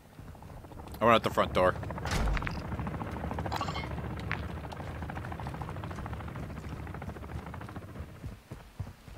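A helicopter's rotor drones overhead.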